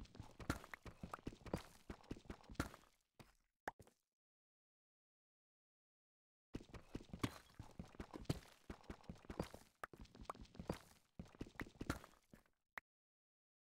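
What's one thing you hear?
A pickaxe chips rapidly at stone, with quick tapping blows.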